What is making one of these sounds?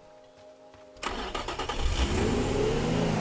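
A car crashes hard with a loud metallic crunch.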